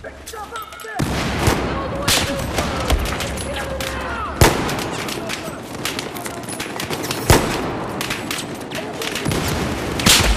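Gunfire crackles steadily in the background.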